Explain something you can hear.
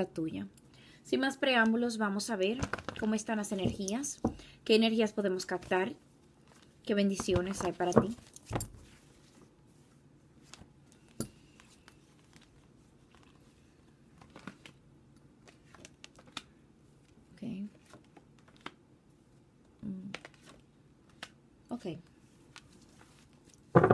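Playing cards shuffle and riffle softly.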